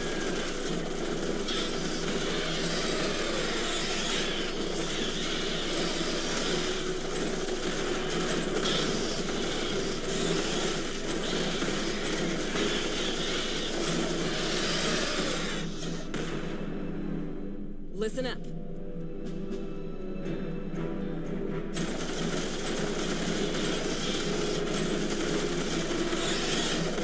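Insect creatures screech and chitter.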